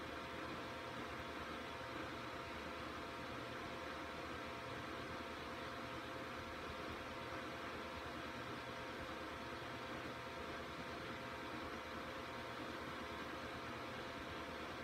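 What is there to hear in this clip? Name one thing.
A computer fan hums steadily.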